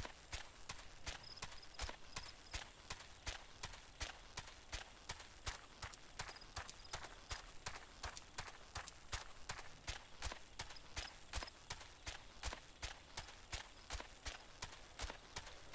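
Heavy bird feet thud and patter quickly and steadily on a path.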